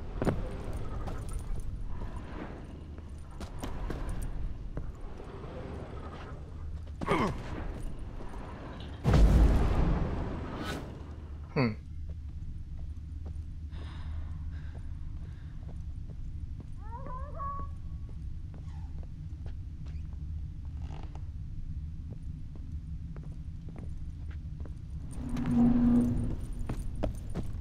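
Footsteps thud on wooden floorboards indoors.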